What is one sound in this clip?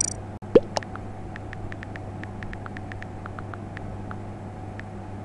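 Soft keyboard clicks tick quickly as letters are typed.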